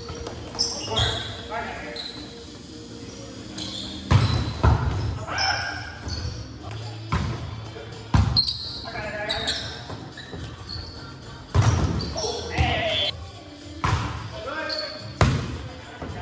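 A volleyball is struck with sharp slaps in a large echoing gym.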